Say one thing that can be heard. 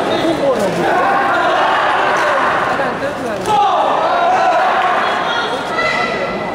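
Spectators cheer and shout as the fighters clash.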